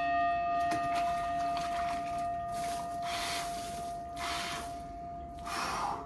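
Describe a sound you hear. Water sloshes and splashes as a man lowers himself into a tub.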